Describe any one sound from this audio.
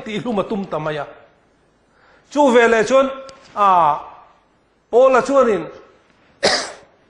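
A man preaches with animation through a microphone, his voice rising and falling in short bursts.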